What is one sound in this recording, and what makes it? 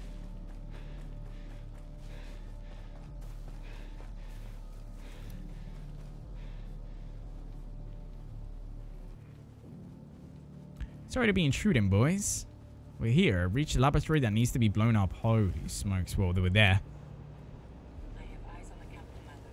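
Footsteps rustle softly through undergrowth.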